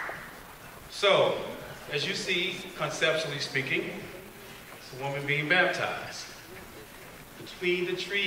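A man speaks calmly through a microphone over loudspeakers in a large hall.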